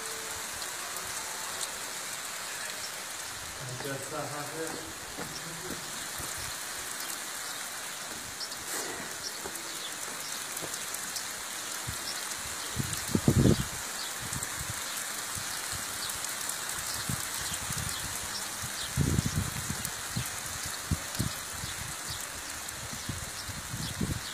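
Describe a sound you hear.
Heavy rain pours down and patters on the ground outdoors.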